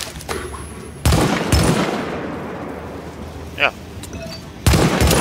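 Loud gunshots crack in bursts.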